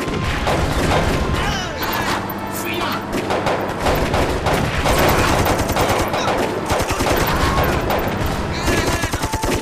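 Gunfire crackles rapidly in a battle.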